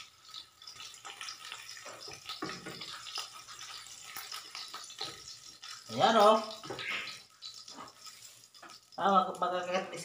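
Eggs sizzle in hot oil in a frying pan.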